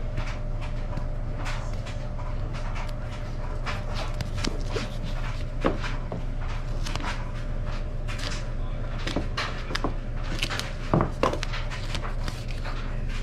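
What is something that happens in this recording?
Tape rustles and crinkles as hands handle it.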